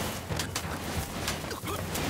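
Feet run and scuffle on dirt.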